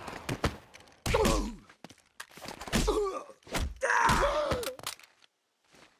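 Fist punches thud against a body in a brawl.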